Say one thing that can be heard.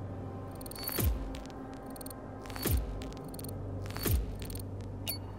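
Short electronic whooshes sweep downward, one after another.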